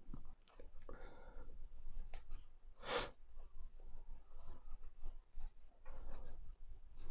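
A crochet hook and cord rustle softly as stitches are worked.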